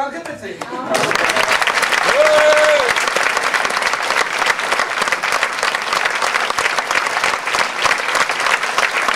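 Hands clap in loud, steady applause in a large hall.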